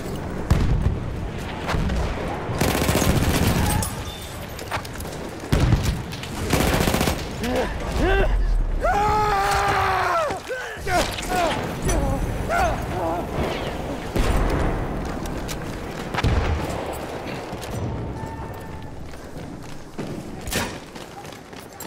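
Rifle shots crack loudly in quick bursts.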